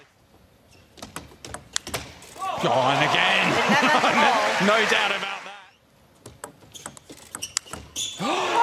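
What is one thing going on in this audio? A table tennis ball clicks quickly back and forth off paddles and the table.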